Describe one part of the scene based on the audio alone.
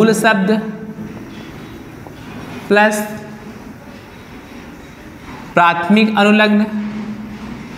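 A man speaks loudly and clearly nearby in short bursts.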